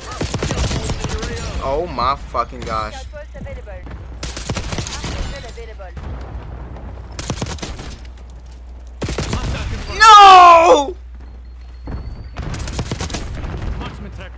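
Rapid gunfire crackles in short bursts.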